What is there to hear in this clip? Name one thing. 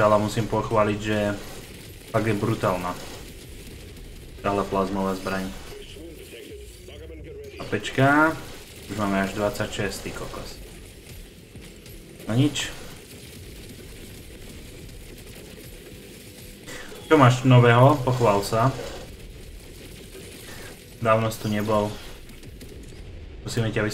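A man talks casually and closely into a microphone, in bursts.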